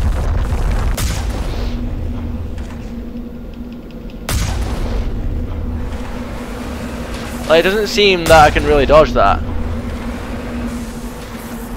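A cannon fires with loud booms.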